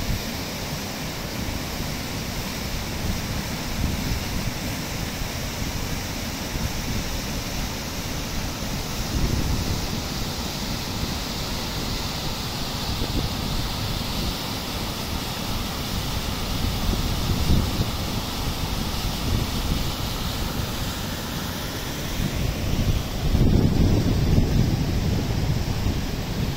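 A swollen river rushes and roars loudly over rocks.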